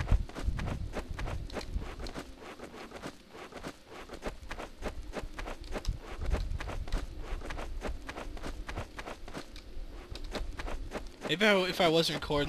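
Footsteps tread quickly and steadily on hard ground.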